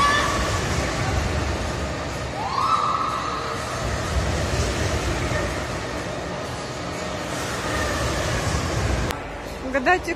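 A large swinging ride rushes back and forth in an echoing hall.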